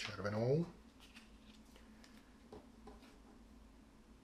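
A card slides and taps on a table.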